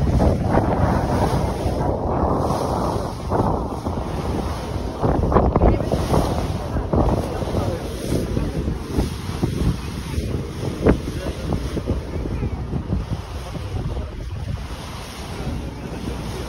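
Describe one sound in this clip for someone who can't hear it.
Water splashes and churns against a moving boat.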